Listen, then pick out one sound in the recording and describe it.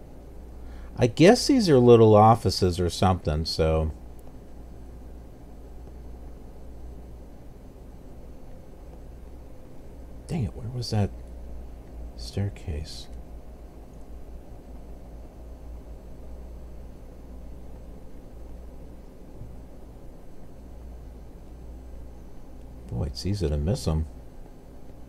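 A man talks calmly into a headset microphone.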